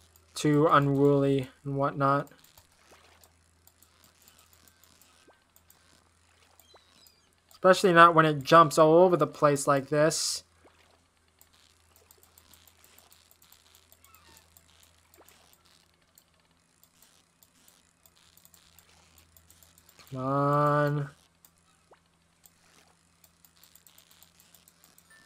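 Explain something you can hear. A fishing reel clicks softly as line is reeled in.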